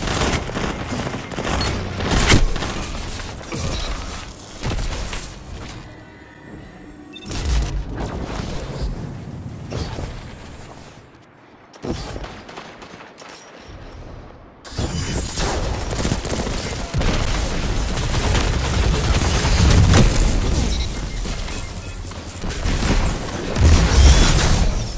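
Guns fire in quick bursts.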